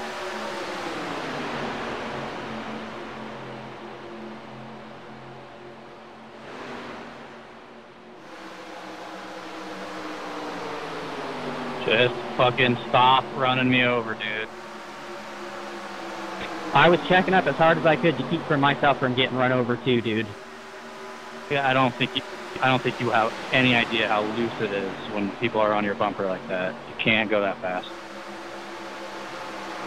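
Race car engines roar steadily as cars speed past.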